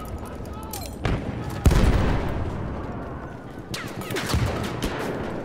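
A gun fires loud single shots that echo.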